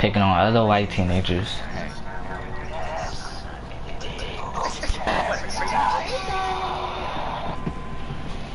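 A young woman speaks in a shaky, upset voice.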